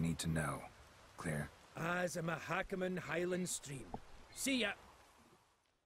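A man speaks gruffly and calmly, close by.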